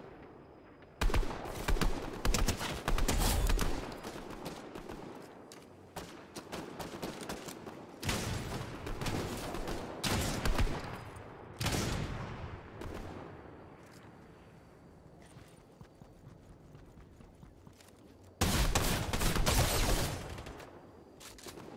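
Rifle shots fire in loud bursts.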